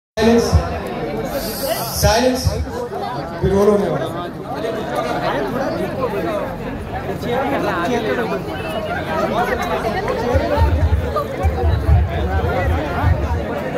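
A crowd of men and women chatter and cheer close by.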